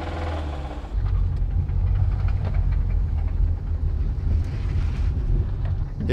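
A car drives along with a louder rumble of engine and tyres.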